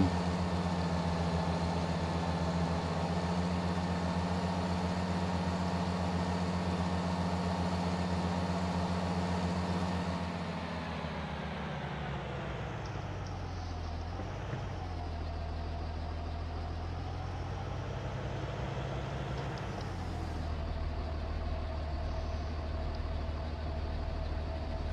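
A truck engine rumbles steadily, dropping in pitch as it slows.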